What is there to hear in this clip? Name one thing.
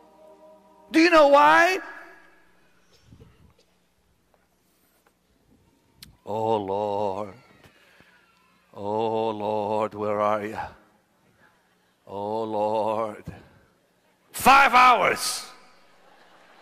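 An elderly man sings out loudly through a loudspeaker in a large echoing hall, in short drawn-out phrases with pauses between.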